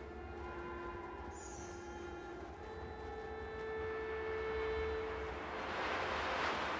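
Strong wind howls through a snowstorm, rising into a loud gust.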